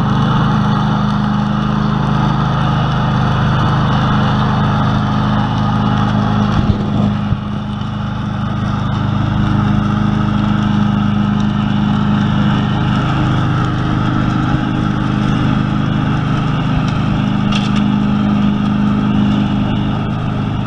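A ride-on mower engine hums steadily close by, then drones on as it moves away.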